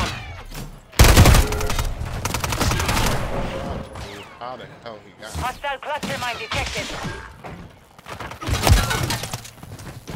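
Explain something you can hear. Gunfire bursts rattle loudly.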